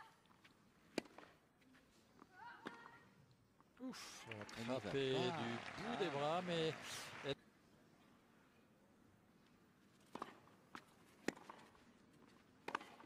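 A tennis ball is struck sharply by rackets.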